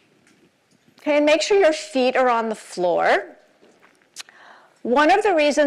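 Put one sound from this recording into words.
A middle-aged woman speaks with animation into a microphone in a large room.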